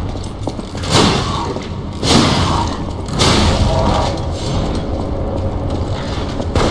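A sword swings and clashes in combat.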